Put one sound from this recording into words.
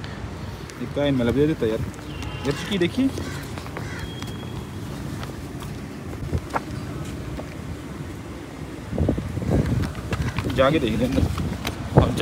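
Footsteps fall on paving stones.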